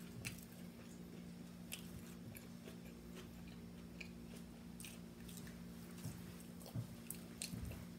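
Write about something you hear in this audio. A woman chews food noisily close to a microphone.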